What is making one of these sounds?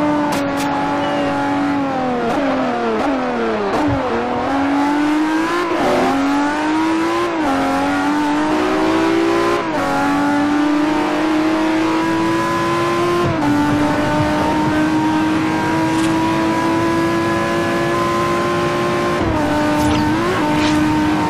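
A sports car engine roars, dropping in pitch as the car brakes and rising again as it speeds up through the gears.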